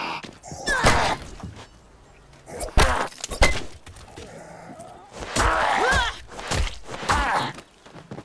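A metal pipe strikes a body with heavy thuds.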